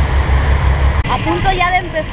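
A young woman exclaims close by.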